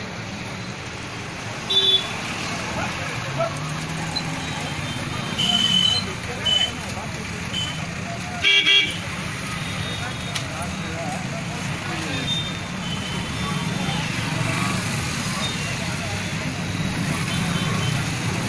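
Traffic rumbles steadily along a busy street outdoors.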